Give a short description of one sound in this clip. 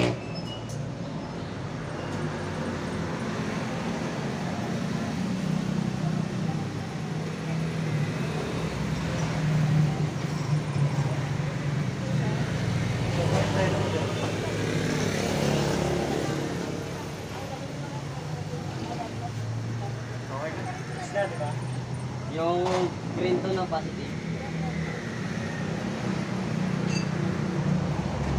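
A motorcycle engine idles with a steady low hum.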